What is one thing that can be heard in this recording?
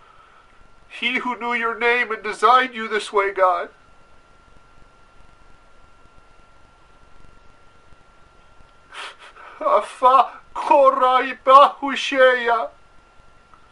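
An older man sings slowly and with feeling, close by.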